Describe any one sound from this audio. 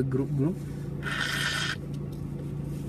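A young man blows his nose into a tissue.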